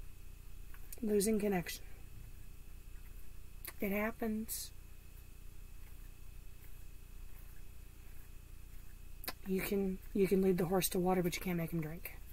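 A woman speaks calmly and close by, in short phrases with long pauses.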